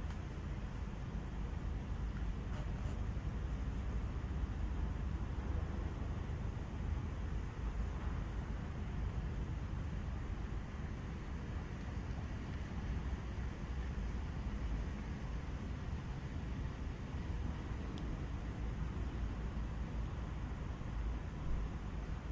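Wind rumbles steadily outdoors.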